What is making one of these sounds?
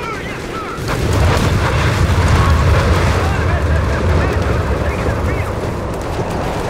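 Explosions rumble and boom nearby.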